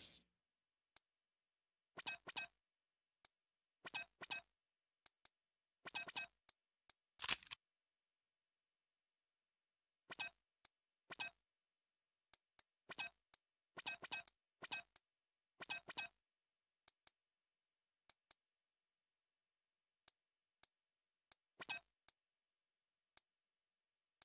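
Soft game menu clicks and blips sound again and again.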